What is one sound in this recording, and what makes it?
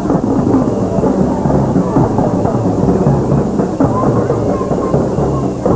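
A snare drum rattles along.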